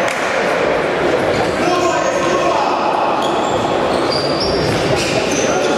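Sneakers squeak on a hard floor in a large echoing hall.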